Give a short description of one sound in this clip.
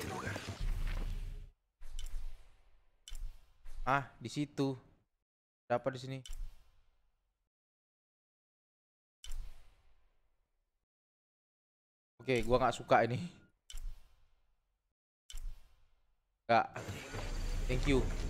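A man talks with animation into a nearby microphone, in short bursts with pauses.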